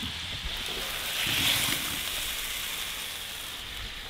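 Tomatoes tumble from a pan into a metal pot.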